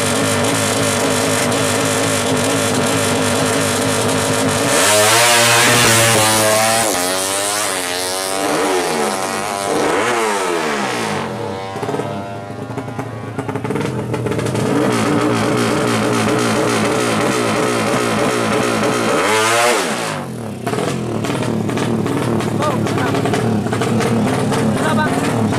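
A two-stroke motorcycle engine idles and revs loudly nearby.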